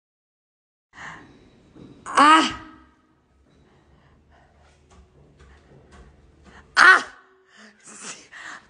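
A woman exclaims cheerfully close by.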